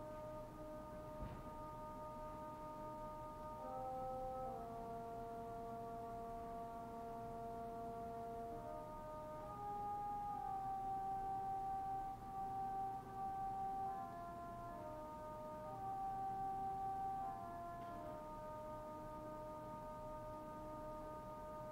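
A small choir sings slow, sustained chords in a reverberant hall.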